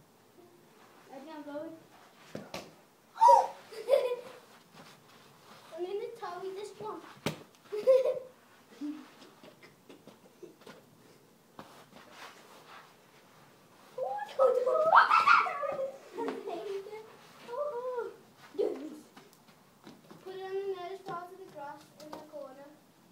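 Children talk and shout with excitement close by, outdoors.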